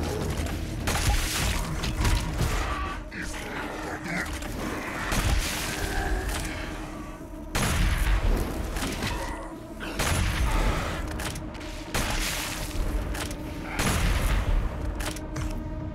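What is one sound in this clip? A heavy gun fires in loud, booming blasts.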